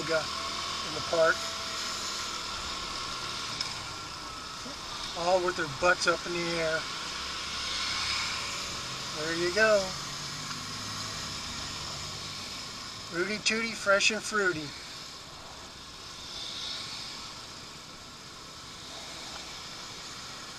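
A motorcycle engine hums steadily while riding slowly in traffic.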